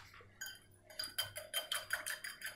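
A whisk beats egg whites in a glass bowl, clicking against the glass.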